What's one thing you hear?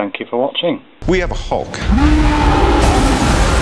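A creature roars loudly.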